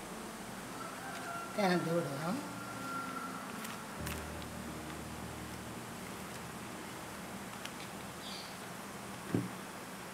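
Hands rub and toss dry crumbly flour, rustling softly.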